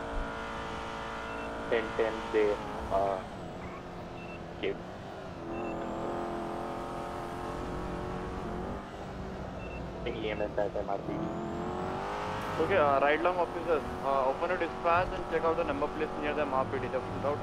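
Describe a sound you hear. A car engine hums steadily as the car speeds along a road.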